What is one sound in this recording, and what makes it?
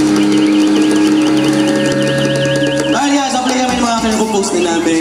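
A live band plays loudly through speakers on an outdoor stage.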